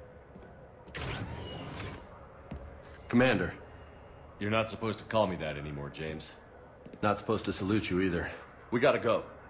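A man speaks calmly and quietly, close by.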